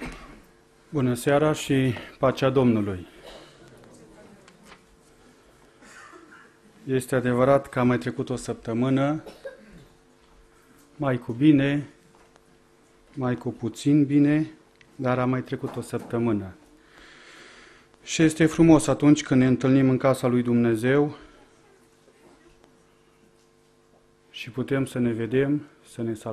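A man speaks calmly into a microphone in bursts, with pauses between phrases, in a room with slight echo.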